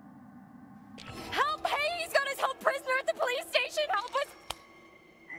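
A young woman shouts desperately for help.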